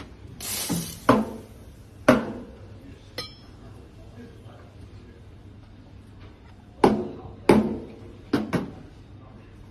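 A metal milk jug knocks sharply on a counter.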